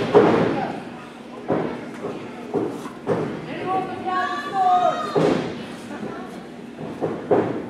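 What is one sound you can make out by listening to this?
Wrestlers slam loudly onto a ring mat, echoing through a large hall.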